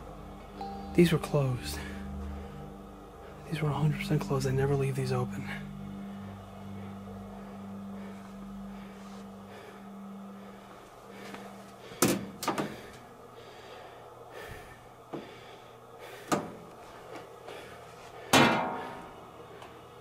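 A metal washing machine lid clanks and thuds as it is moved and shut.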